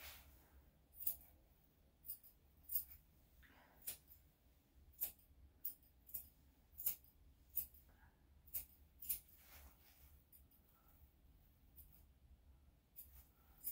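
Scissors snip sharply through fur, close by.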